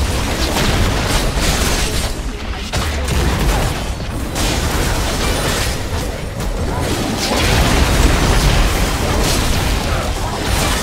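Game spells blast and weapons clash in a busy battle.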